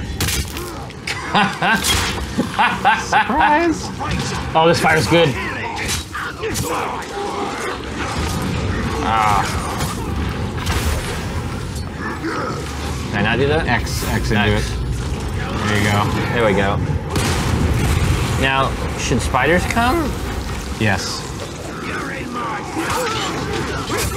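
Sword blows clash and thud in a fight.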